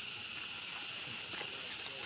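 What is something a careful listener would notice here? A baby monkey squeals close by.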